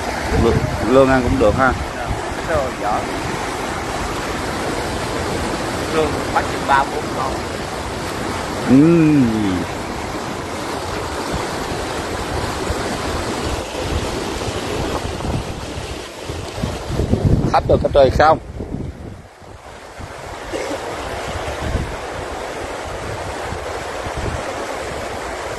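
Feet splash and slosh through shallow muddy water.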